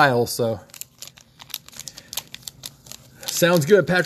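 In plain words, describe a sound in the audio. A foil wrapper crinkles and rustles in hands.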